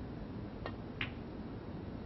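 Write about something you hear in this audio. Snooker balls knock together with a crisp clack.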